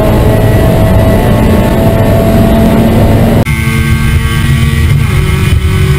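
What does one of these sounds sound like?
A race car engine roars loudly at high revs, heard from inside the car.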